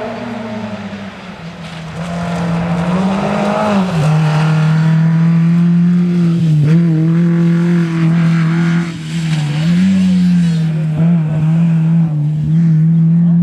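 A rally car engine roars and revs hard as the car speeds past close by.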